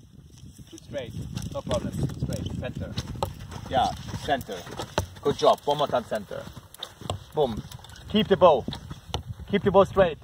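A horse gallops closer with heavy hoofbeats.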